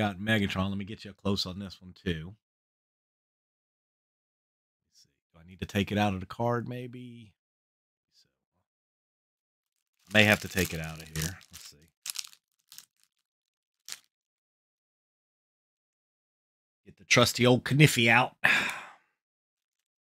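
An elderly man speaks calmly into a close microphone, in short bursts with pauses.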